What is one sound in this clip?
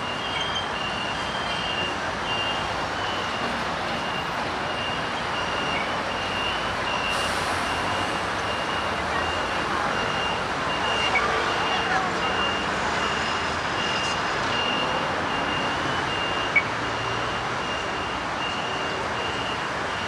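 City traffic hums and rumbles steadily outdoors.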